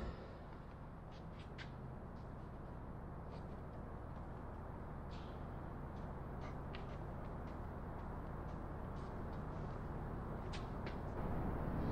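Small metal tools tick and click softly.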